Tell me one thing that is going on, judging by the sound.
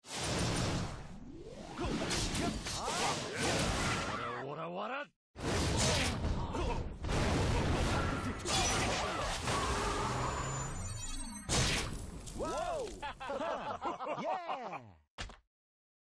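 Magic blasts and sword clashes burst out over and over in a game battle.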